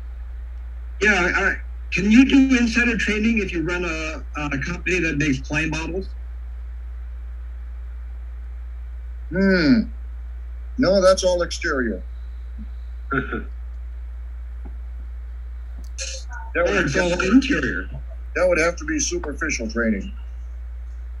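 Men speak in turn over an online call, calmly and conversationally.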